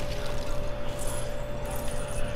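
Coins scatter with a bright jingling clink.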